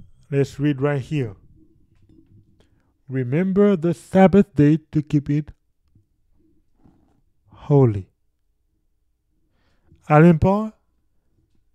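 A young man speaks with animation, close into a microphone, in short bursts with pauses.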